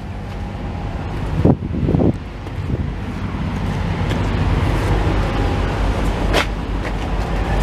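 A diesel truck engine idles with a steady low rumble.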